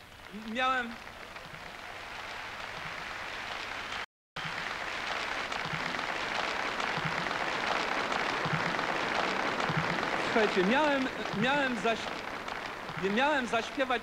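A large audience claps and applauds.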